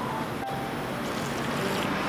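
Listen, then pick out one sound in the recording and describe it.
A man sips soup loudly from a spoon.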